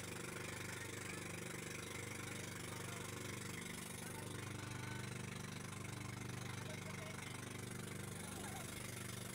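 A boat engine drones steadily throughout.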